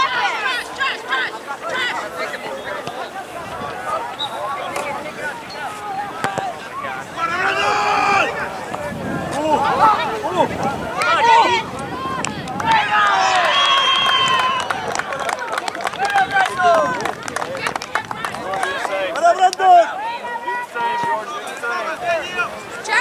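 Young players shout and call to each other across an open field.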